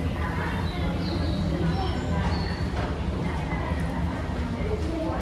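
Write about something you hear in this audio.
An escalator hums and rumbles steadily.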